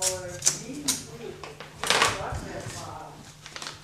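Paper crinkles and rustles in a man's hands.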